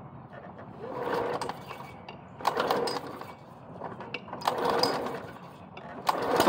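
A man yanks a lawn mower's pull cord several times, with a rasping sound.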